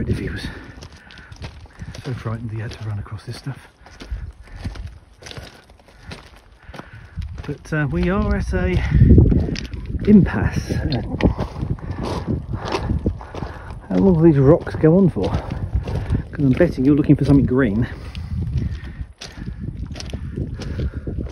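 A deer's hooves clatter on loose rocks.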